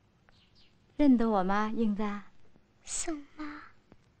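A second woman speaks softly, close by.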